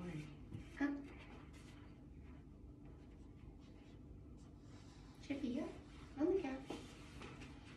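A young woman speaks to a dog in short, lively bursts nearby.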